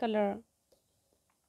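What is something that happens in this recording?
A woman speaks briefly and close by.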